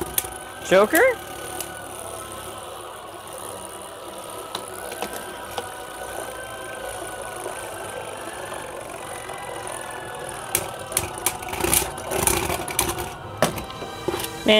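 Spinning tops whir steadily on a plastic arena.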